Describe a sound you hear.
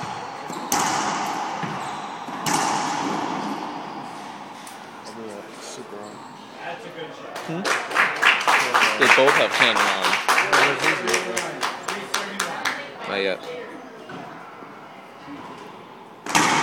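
A racquetball smacks hard against the walls, ringing through an echoing court.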